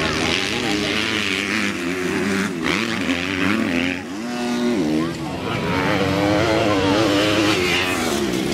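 Dirt bike engines rev and whine loudly, rising and falling in pitch.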